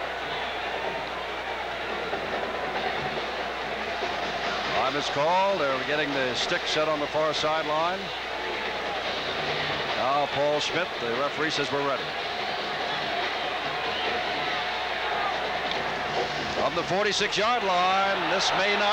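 A large crowd murmurs and cheers steadily in an open stadium.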